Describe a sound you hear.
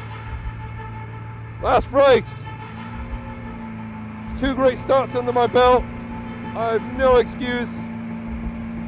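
A race car engine hums steadily at a low idle.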